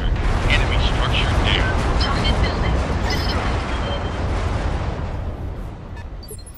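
A heavy explosion rumbles and slowly fades.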